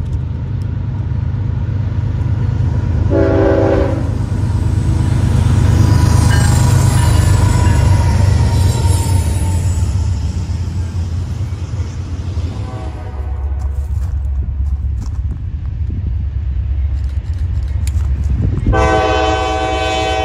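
A freight train rumbles and clatters past on the tracks.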